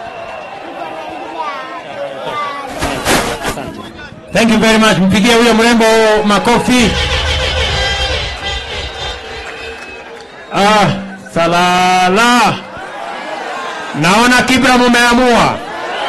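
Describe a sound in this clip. A large crowd cheers and chatters in the background.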